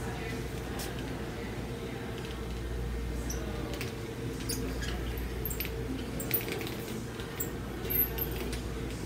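A paint roller rolls and rustles over a textured canvas.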